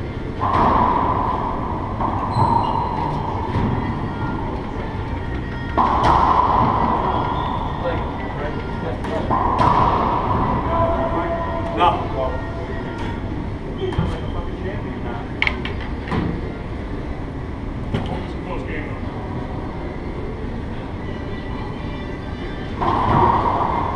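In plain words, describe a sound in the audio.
A racquetball smacks sharply off the walls, echoing around an enclosed court.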